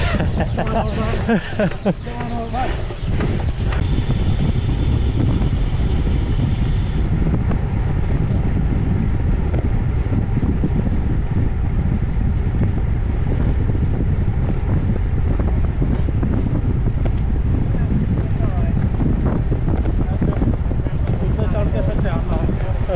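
Wind rushes loudly and steadily past a moving bicycle.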